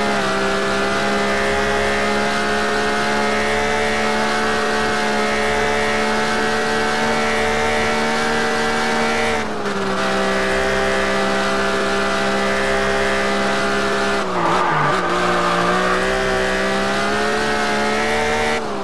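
A car engine roars at high revs, dipping briefly at gear changes.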